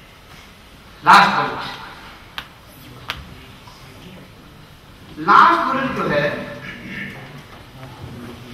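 A man speaks into a microphone, heard over loudspeakers in an echoing hall.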